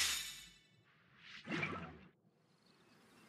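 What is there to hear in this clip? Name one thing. A soft whoosh sweeps by.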